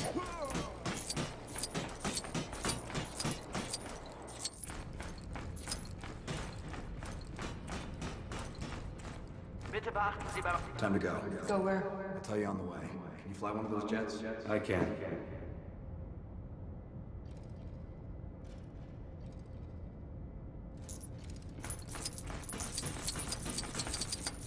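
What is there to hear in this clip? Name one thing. Footsteps clatter quickly on a metal walkway.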